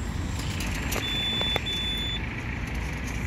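A charging station beeps twice.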